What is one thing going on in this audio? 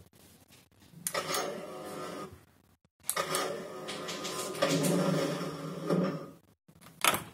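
An electric machine hums and whirs.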